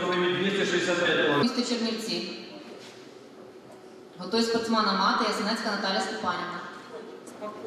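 Men shout loud encouragement in an echoing hall.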